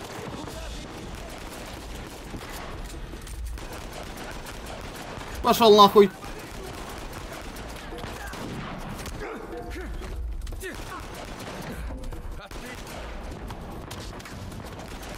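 Gunshots crack in an echoing space.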